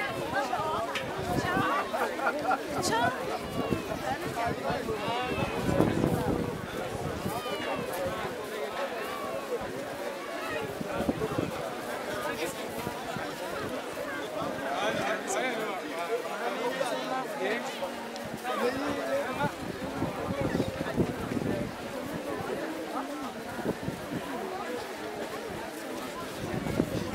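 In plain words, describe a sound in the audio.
Many footsteps shuffle on a dirt road.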